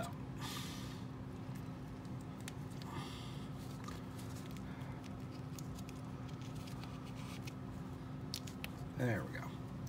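Fingers fumble with a small plastic toy, with soft clicks and rustles.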